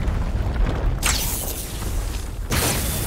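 An axe strikes with a thud.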